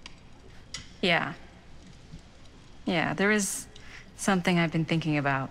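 A middle-aged woman speaks softly and warmly.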